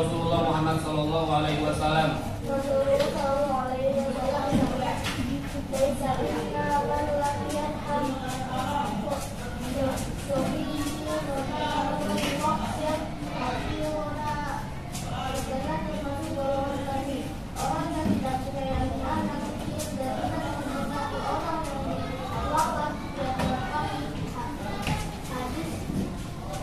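Children recite together in unison, filling an echoing room.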